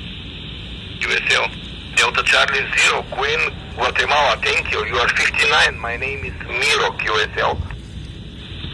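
A man's voice speaks through a small radio loudspeaker, thin and crackly.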